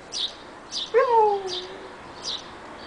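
A puppy yelps sharply.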